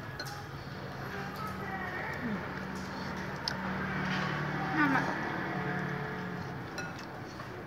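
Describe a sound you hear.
Spoons clink against bowls.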